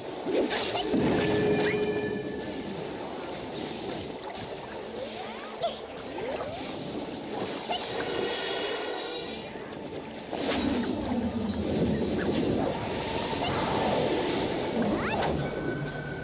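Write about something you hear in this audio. Magic spells whoosh and chime in quick bursts.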